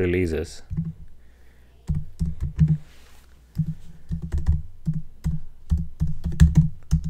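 Keyboard keys click in quick bursts of typing.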